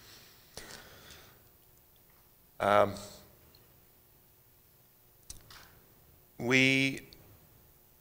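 A man speaks into a microphone in short bursts.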